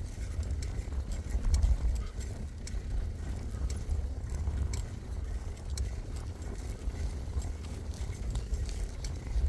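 Bicycle tyres roll and crunch over a sandy, gravelly track.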